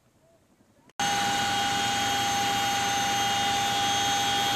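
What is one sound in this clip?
A helicopter engine roars loudly with a steady high whine.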